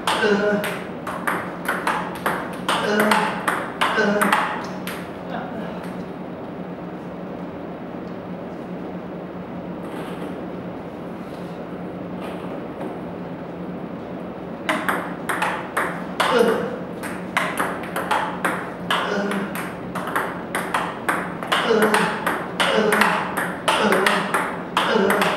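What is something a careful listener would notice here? A table tennis ball clicks rapidly off a paddle and table.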